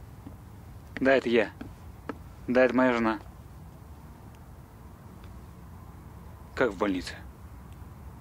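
A man talks calmly on a phone.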